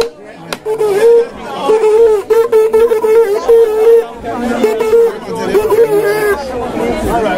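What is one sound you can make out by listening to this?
A crowd of men and women talk and call out nearby.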